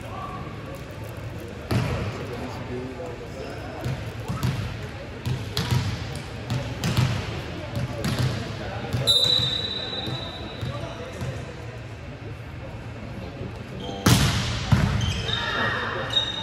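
Young men call out to each other across the hall.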